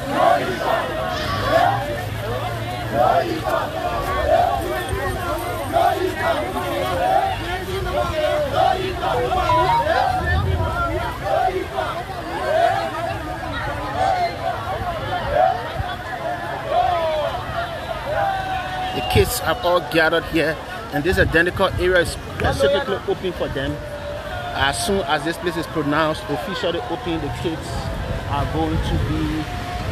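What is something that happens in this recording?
A crowd of people cheers and shouts close by, outdoors.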